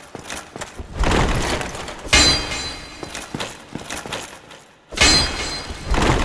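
A heavy blow strikes with a loud crash.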